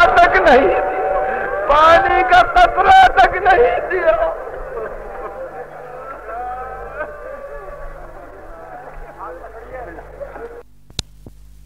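A man speaks with animation on an old recording.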